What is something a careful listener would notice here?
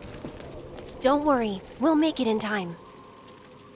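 A young woman speaks softly and sweetly.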